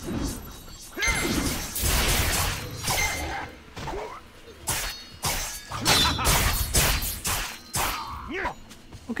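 Swords clash and strike with sharp, ringing impacts.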